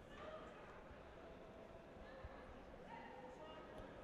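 A judoka is thrown and lands onto a mat with a thud.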